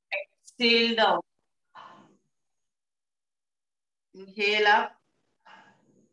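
A woman speaks calmly and clearly, close by, in short phrases with pauses.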